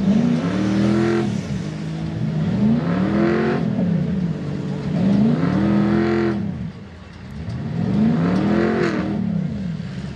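A truck engine revs hard in repeated rising and falling bursts.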